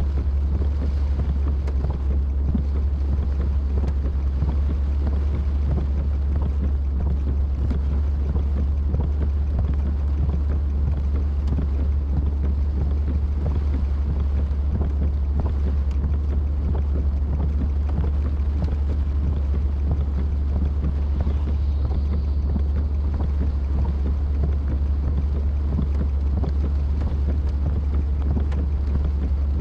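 Rain patters and taps on a windshield.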